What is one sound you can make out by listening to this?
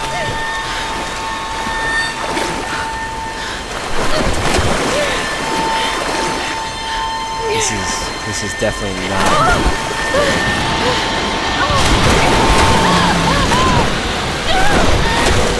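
Water splashes heavily as a body is tossed in a torrent.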